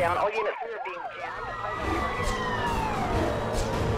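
A police siren wails as a patrol car comes close.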